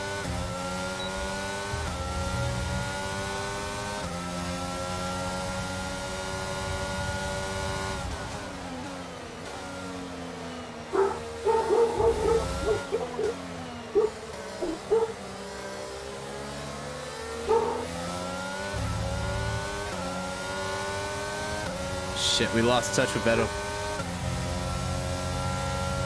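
A racing car engine whines loudly, rising in pitch and dropping as gears shift.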